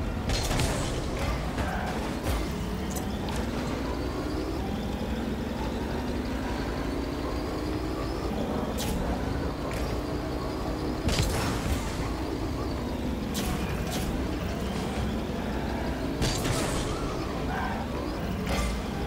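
A game car engine hums and revs up and down.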